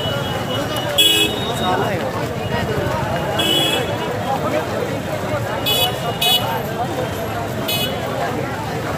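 Men in a crowd shout now and then.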